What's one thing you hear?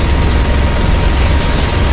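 A heavy machine gun fires in a rapid burst.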